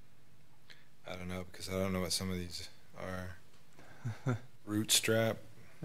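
A man asks a question through a handheld microphone.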